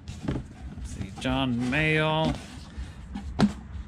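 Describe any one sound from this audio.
A record sleeve slides against cardboard with a papery rustle.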